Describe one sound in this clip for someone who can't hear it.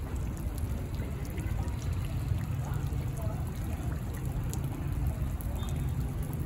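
Water ripples and laps gently in a fountain basin.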